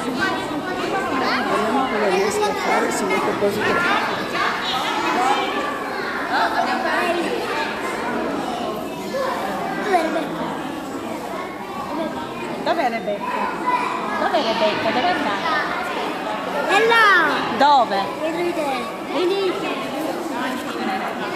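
A crowd of children and adults chatters in an echoing hall.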